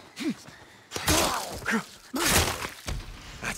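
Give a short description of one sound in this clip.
Heavy blows land with loud thuds.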